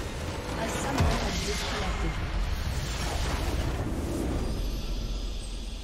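A huge explosion booms and rumbles, then fades.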